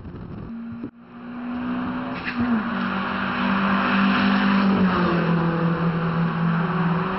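Sports car engines roar loudly as cars race past on a track.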